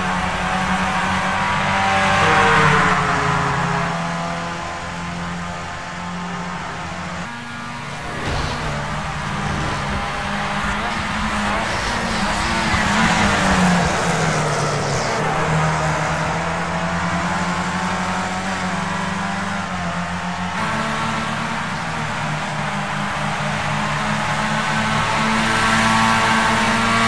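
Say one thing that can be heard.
A racing car engine roars at high revs, rising and falling in pitch as it shifts gears.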